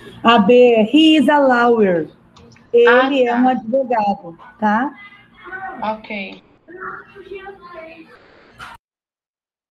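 A woman speaks through a mask over an online call.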